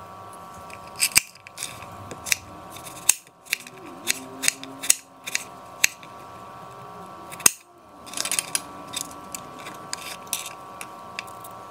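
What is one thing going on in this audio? A knife chops through vegetables and taps on a cutting board.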